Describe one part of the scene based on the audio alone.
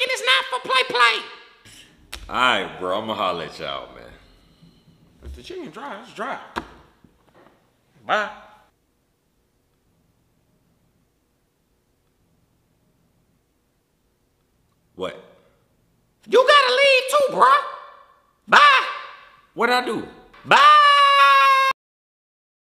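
A man shouts excitedly in a high, silly cartoon voice.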